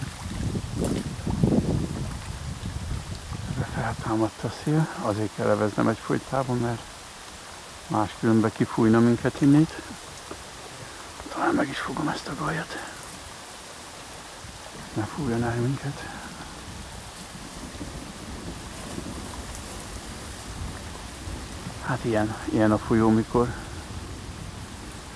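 Rain patters softly on the surface of a river outdoors.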